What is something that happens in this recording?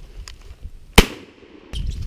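A shotgun fires once, close by and loud.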